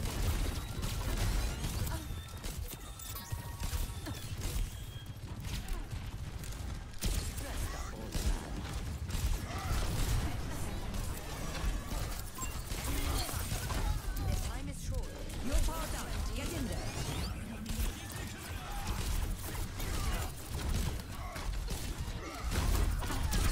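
Sharp blasts and impacts crackle.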